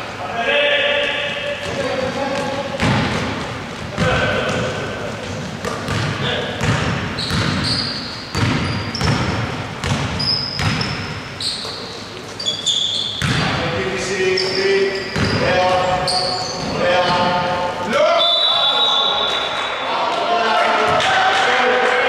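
A basketball bounces with dull thumps in an echoing hall.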